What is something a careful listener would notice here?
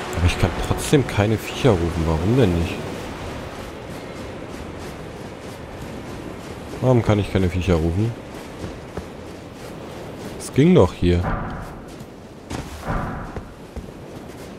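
Footsteps run over dry ground and grass.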